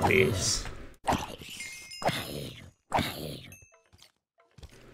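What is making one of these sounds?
A sword strikes a zombie with dull thuds.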